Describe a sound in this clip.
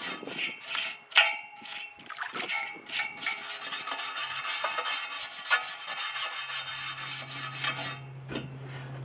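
A brush scrubs a metal wheel with quick, rough strokes.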